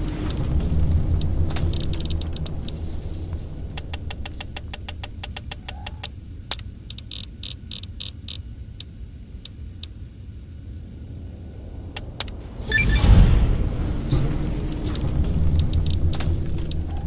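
Game menu selections click as options are scrolled.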